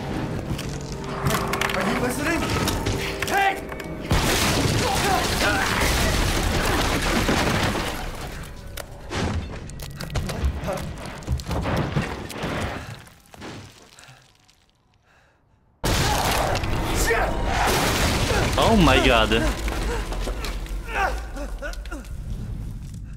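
A young man exclaims with animation, close by.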